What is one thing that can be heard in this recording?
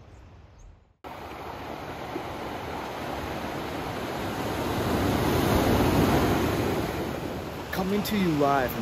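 Ocean waves wash and break on a beach.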